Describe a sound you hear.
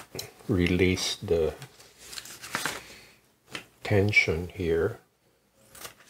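Scissors snip through thin plastic.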